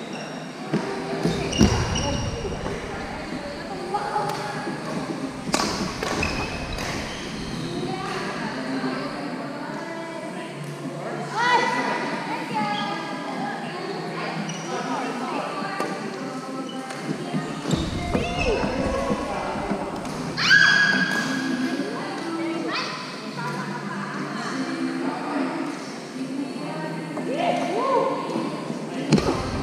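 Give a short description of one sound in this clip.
Young women call out and talk while playing.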